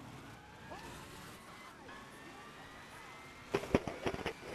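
A NASCAR stock car's V8 engine roars at full throttle.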